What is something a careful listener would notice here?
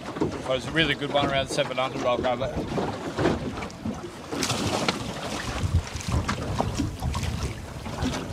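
Waves slap against the side of a boat.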